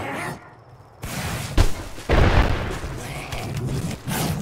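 Blows and impacts thud during a fight.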